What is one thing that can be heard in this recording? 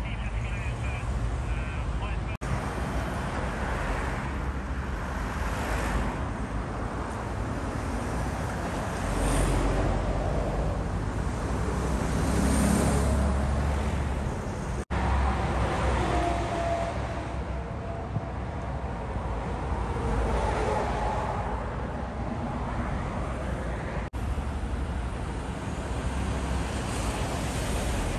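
Traffic rumbles steadily past on a busy road outdoors.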